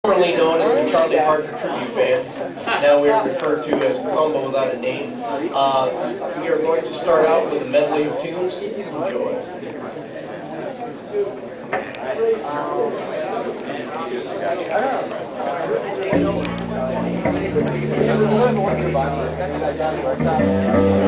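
A small jazz band plays with saxophones.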